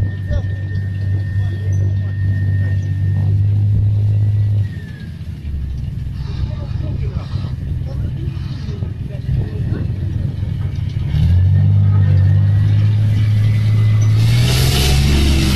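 The diesel engine of a tracked armoured vehicle rumbles as the vehicle drives by.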